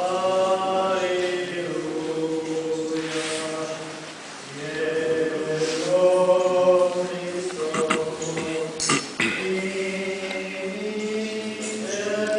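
A man chants steadily in a large echoing hall.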